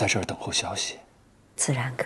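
An adult man asks a question in a low voice.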